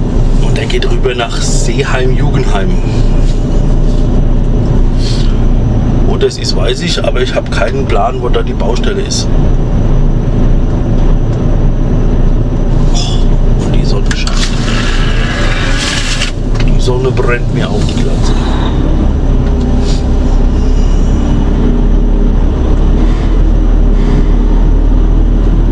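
A heavy diesel truck engine rumbles.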